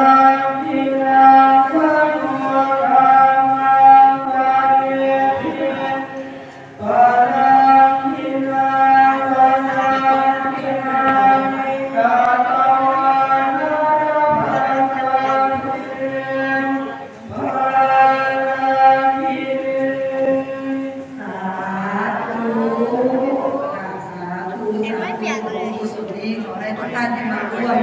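A group of men chant in long, steady tones through loudspeakers in an echoing hall.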